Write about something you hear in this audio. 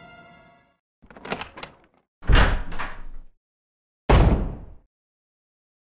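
A wooden door creaks open and thuds shut.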